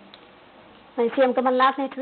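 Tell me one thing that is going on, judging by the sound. A woman reads out the news clearly into a microphone.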